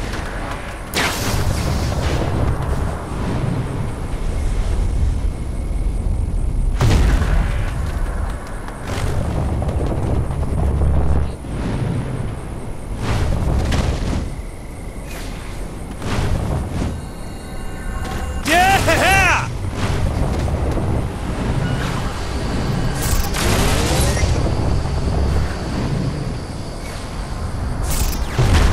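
Air rushes loudly in gusts as a figure leaps and glides.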